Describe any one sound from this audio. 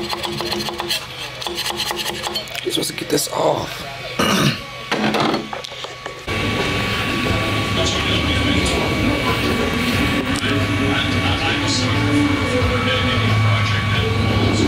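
A printer's stepper motors whir and buzz steadily as the print head moves.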